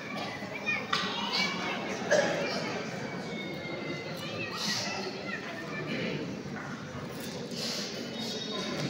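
A man speaks into a microphone over a loudspeaker in an echoing hall.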